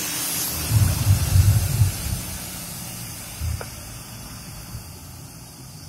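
A bus engine rumbles deeply as the bus pulls away and fades into the distance.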